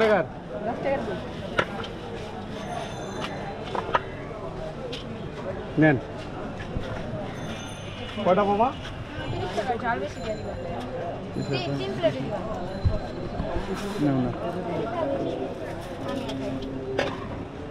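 Adults murmur and talk nearby.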